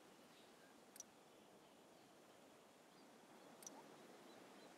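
A soft button click sounds.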